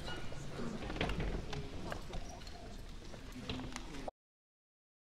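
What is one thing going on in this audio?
A woman speaks at a distance through a microphone.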